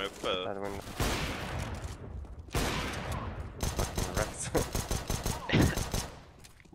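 Gunshots crack sharply in a game.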